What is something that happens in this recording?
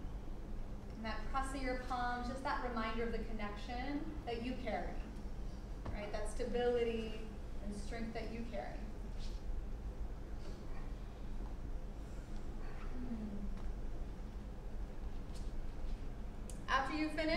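A woman speaks calmly, giving instructions.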